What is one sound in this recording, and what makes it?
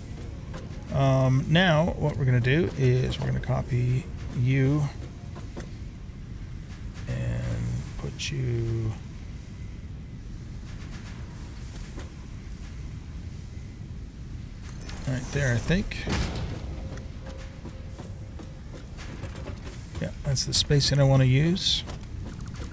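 An older man talks calmly into a microphone.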